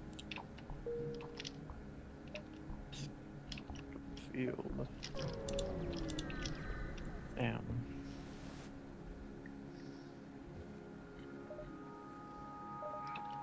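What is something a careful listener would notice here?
Soft electronic clicks and blips sound from a game's menus.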